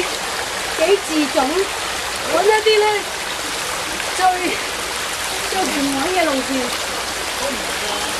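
Several adults call out to each other outdoors across a rocky stream.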